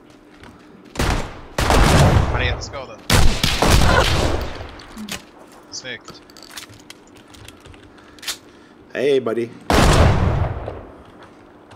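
Shotgun blasts boom loudly and echo outdoors.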